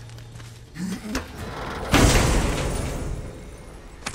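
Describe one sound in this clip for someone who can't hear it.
A heavy chest lid thuds open.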